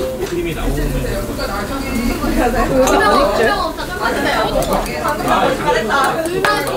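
Chopsticks clink against dishes.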